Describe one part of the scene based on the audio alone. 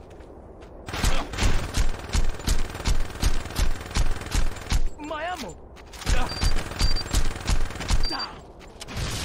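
A gun fires in rapid repeated bursts.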